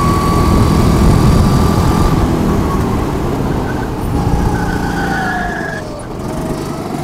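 A kart engine whines loudly up close, its pitch rising and falling through the corners.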